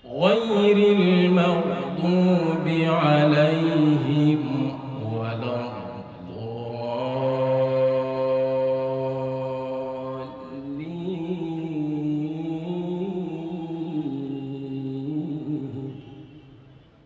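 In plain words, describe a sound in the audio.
A man chants in a long, melodic voice into a microphone, heard through loudspeakers in a large echoing space.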